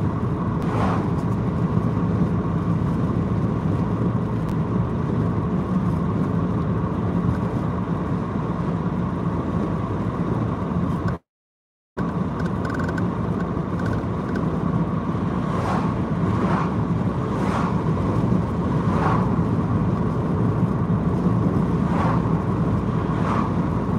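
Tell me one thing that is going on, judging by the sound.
A car's tyres and engine rumble steadily on the road.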